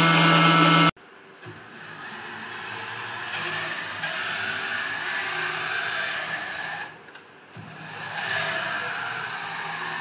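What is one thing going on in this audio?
A cordless drill whirs, turning a screw.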